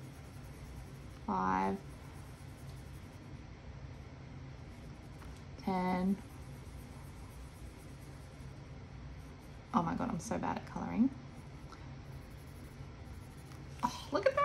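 A felt-tip marker squeaks softly across paper.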